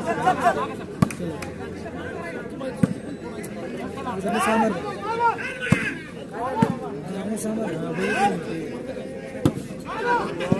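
A ball is struck with sharp slaps.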